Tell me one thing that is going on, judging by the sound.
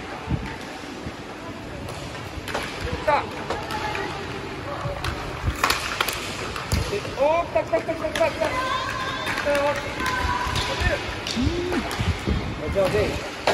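Hockey sticks clack on a puck and the hard floor in a large echoing hall.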